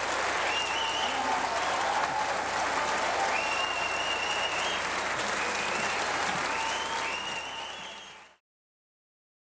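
A jazz big band plays in a large hall.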